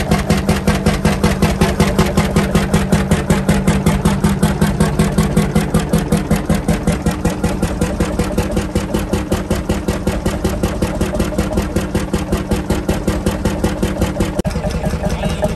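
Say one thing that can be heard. An old stationary engine chugs and pops in a fast, steady rhythm close by.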